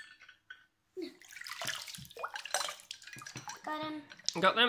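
Water pours and trickles into a bowl.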